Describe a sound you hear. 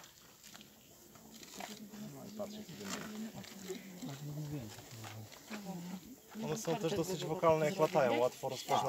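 A middle-aged man speaks calmly close by, outdoors.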